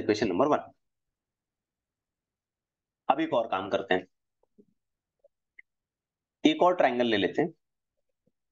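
A young man speaks calmly in short phrases through a microphone, with pauses in between.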